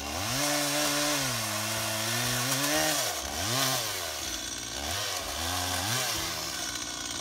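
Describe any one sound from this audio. A chainsaw engine revs up and down close by.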